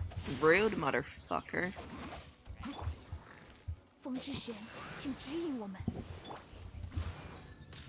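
Magical blasts and whooshes burst rapidly in a video game battle.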